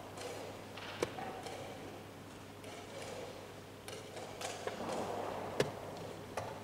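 A wooden chess piece taps down on a board.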